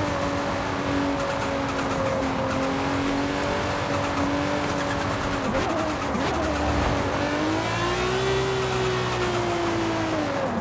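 A racing car engine roars at high speed, dropping in pitch as it slows around a bend.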